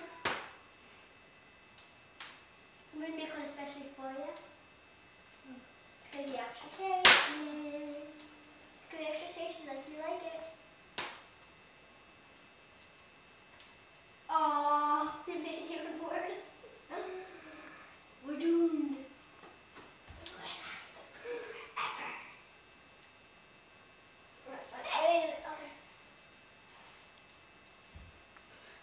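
A fire crackles and pops softly.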